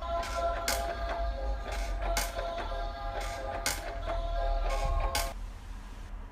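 A baby swing plays a tinkling tune.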